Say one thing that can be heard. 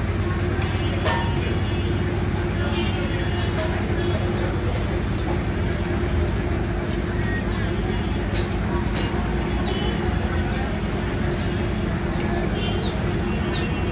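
A knife slices through hide and flesh as a goat carcass is skinned.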